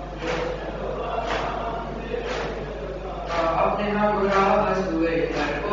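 A group of men chant together in rhythm.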